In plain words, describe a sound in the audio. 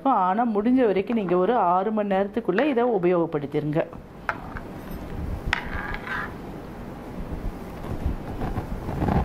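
A spoon stirs and clinks against a bowl.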